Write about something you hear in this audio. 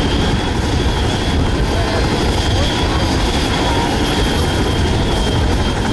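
A helicopter's engine roars loudly.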